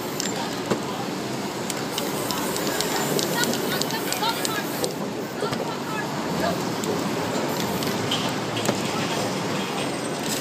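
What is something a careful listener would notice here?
A spray can hisses as paint is sprayed.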